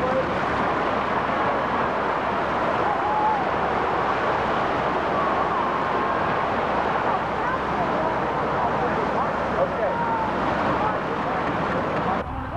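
A boat engine roars steadily close by.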